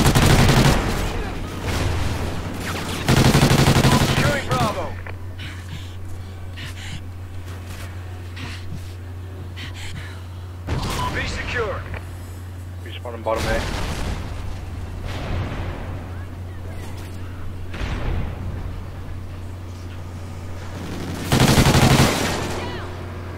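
Gunfire rattles in short, loud bursts.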